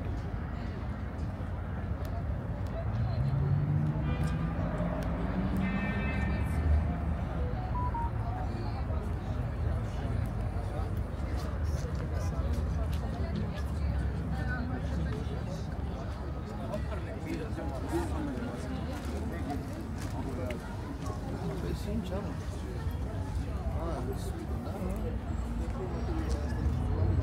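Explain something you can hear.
Men and women chatter in a crowd outdoors.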